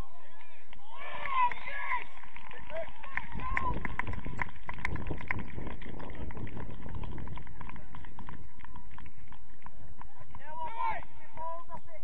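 Young players shout across an open field.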